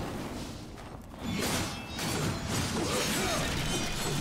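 A sword clangs against a shield with a metallic ring.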